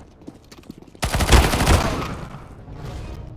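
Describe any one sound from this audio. A loud blast booms and rumbles away.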